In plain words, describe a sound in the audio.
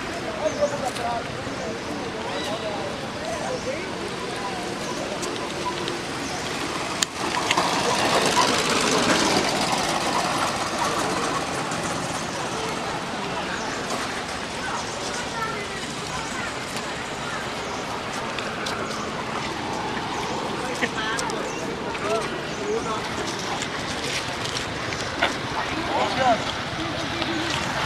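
Dry leaves rustle as monkeys move over the ground.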